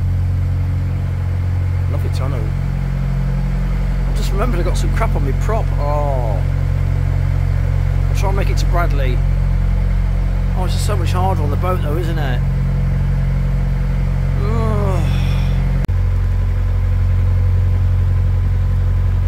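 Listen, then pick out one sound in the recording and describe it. A boat engine chugs steadily with a low drone.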